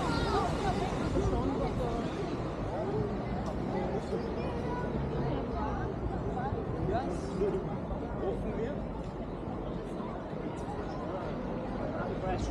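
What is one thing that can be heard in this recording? Adults chatter nearby as they walk along.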